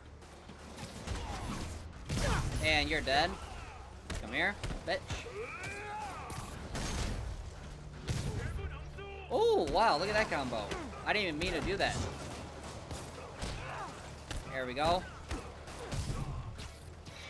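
Punches and kicks thud in a fast fight.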